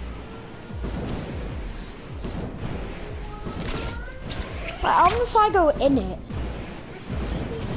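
A jetpack roars with a rushing whoosh.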